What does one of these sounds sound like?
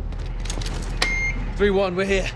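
A keypad beeps as a button is pressed.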